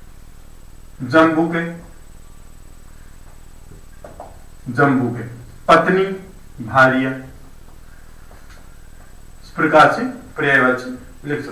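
A man speaks clearly in short phrases, as if teaching, close by.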